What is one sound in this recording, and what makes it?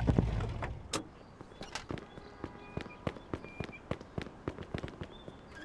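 Footsteps tap quickly on pavement.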